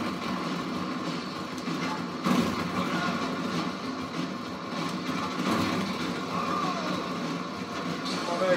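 Video game sounds play through a television's speakers.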